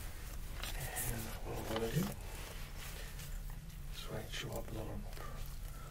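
A leather wallet rustles and taps as it is handled close by.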